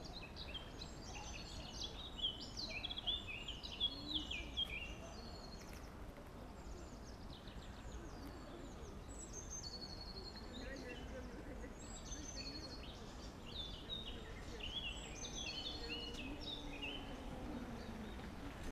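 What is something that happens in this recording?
A slow stream flows quietly outdoors.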